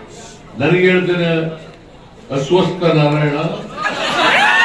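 An elderly man speaks forcefully into a microphone over loudspeakers.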